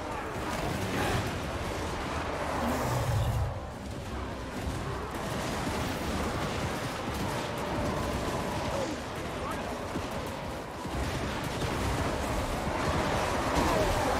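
A battle din of clashing weapons rumbles on.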